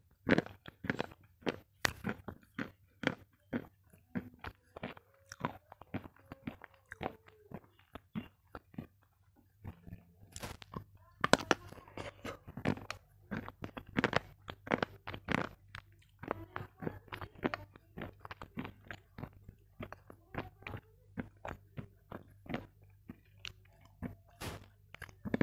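Crinkly foil rustles and crackles close to a microphone.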